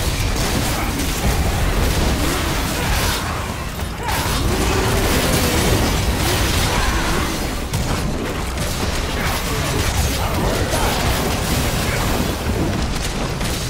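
Fiery blasts burst with a roaring whoosh.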